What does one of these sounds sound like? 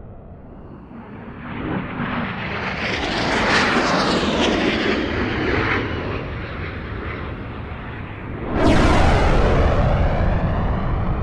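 Jet engines roar loudly overhead as several fighter planes fly past.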